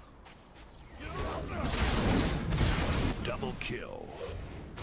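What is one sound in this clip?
A magic spell bursts in a roaring blast of fire.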